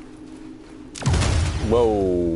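A loud blast goes off.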